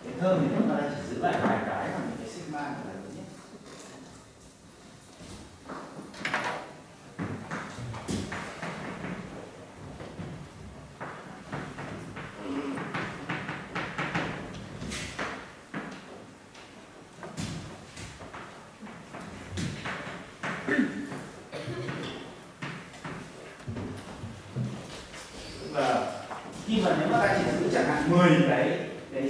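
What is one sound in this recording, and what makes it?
A man speaks calmly in a large echoing room.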